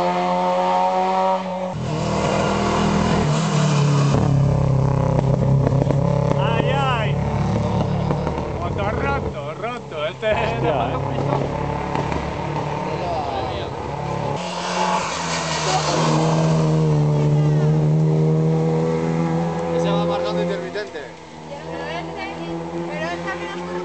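A racing car engine roars and revs hard as it speeds past, then fades into the distance.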